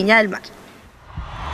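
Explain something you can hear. A young woman speaks cheerfully, close to a microphone.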